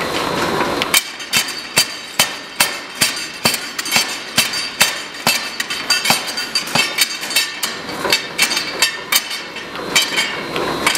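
A hammer strikes hot metal in quick, ringing blows.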